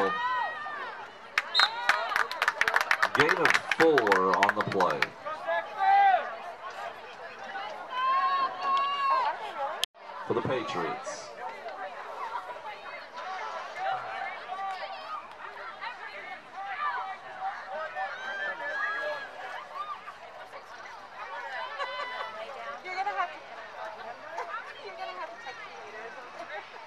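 Young players shout and chatter outdoors across a field.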